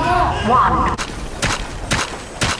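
A gun fires in short, sharp bursts.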